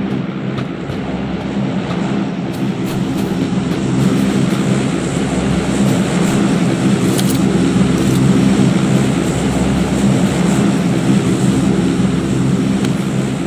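Footsteps crunch quickly over snow and dirt.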